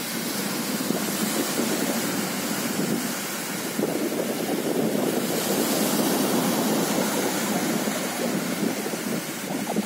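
A dog digs and scratches in sand.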